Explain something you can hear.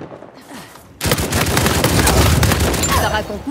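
A heavy machine gun fires rapid bursts close by.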